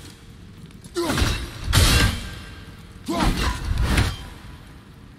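An axe whooshes through the air and strikes with a crackling burst.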